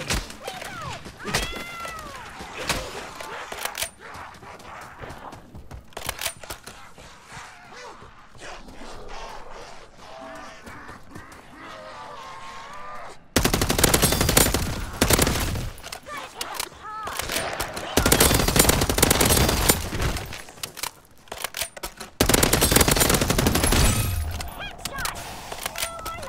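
Zombies growl and groan nearby.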